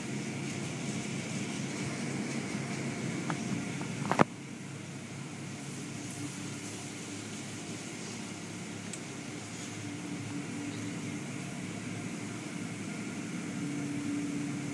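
Water sprays and splashes against a car.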